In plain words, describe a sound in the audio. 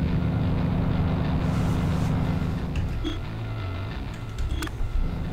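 A car engine hums low and steady at slow speed.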